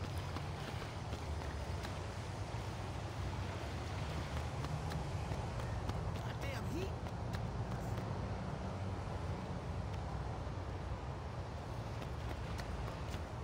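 Footsteps run quickly across pavement.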